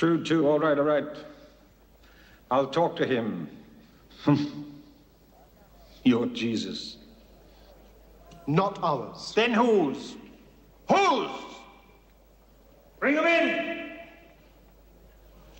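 A middle-aged man speaks forcefully in short, dramatic bursts with pauses between them.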